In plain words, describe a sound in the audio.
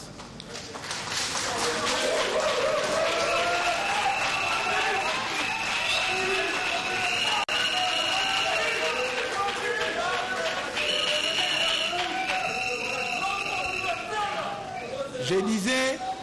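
A large crowd sings together in an echoing hall.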